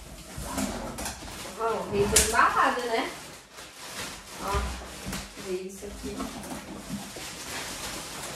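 Plastic wrapping crinkles as parts are pulled out.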